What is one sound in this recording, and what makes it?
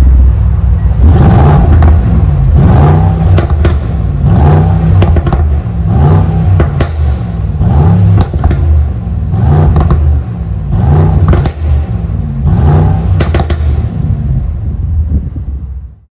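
A car engine rumbles deeply through its exhaust, revving up and down again and again.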